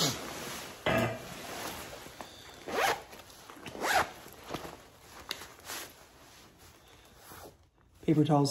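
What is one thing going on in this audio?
Fabric rustles and crinkles close by.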